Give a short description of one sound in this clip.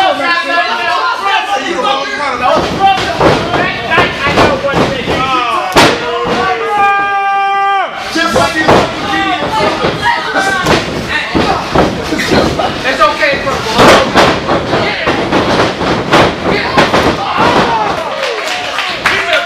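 A man shouts nearby in an echoing room.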